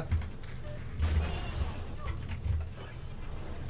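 Heavy ship guns boom in a salvo.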